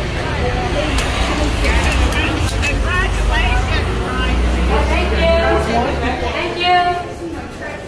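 Women and men talk nearby in a busy room.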